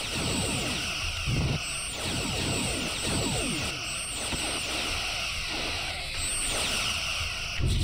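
Energy weapons fire in rapid bursts with crackling explosions.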